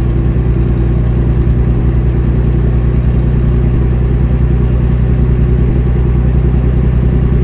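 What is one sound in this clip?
A truck engine rumbles steadily at a low pitch.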